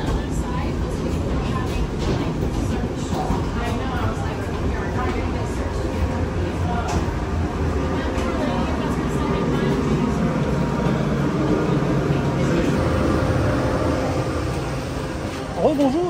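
A steady low roar of a parked aircraft drones nearby.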